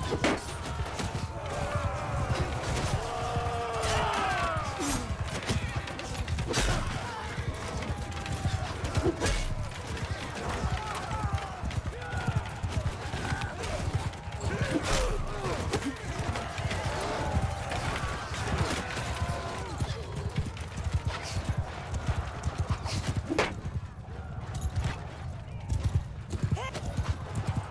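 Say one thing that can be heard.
Horse hooves thud rapidly in a steady gallop.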